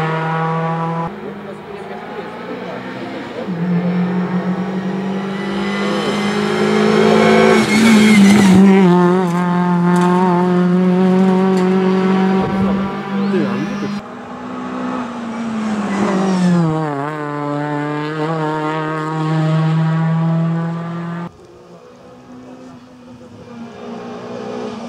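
A rally car engine roars loudly, revving high and dropping between gear changes as the car speeds past.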